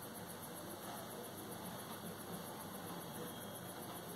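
A paintbrush brushes softly across watercolour paper.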